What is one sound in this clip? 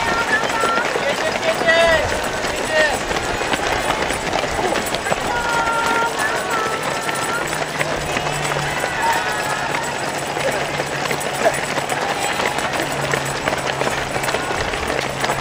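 A crowd of spectators cheers and calls out to runners.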